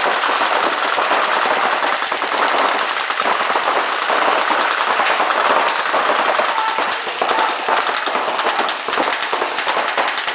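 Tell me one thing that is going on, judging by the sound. Paintball markers fire in rapid pops that echo through a large hall.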